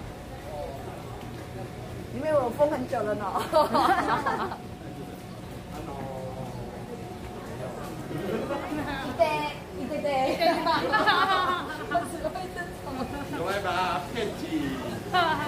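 A crowd murmurs along a busy street.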